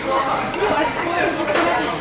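A spoon clinks against a cup.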